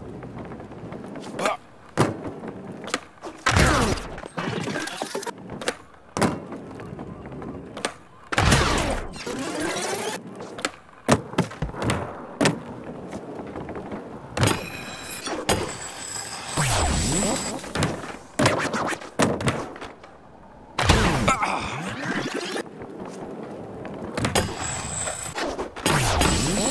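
Skateboard wheels roll and rumble on a smooth floor.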